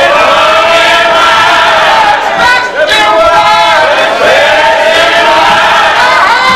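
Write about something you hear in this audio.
A middle-aged man sings loudly and passionately, close by, with a slightly distorted sound.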